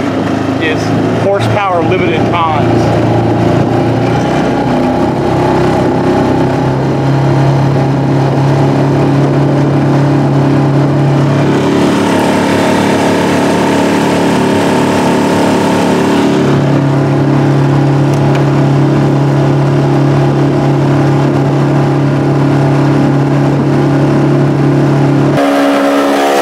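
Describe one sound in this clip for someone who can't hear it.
An outboard motor drones steadily close by.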